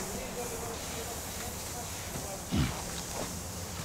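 A horse rolls on its back in soft sand.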